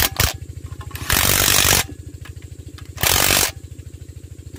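A cordless impact driver whirs in short bursts.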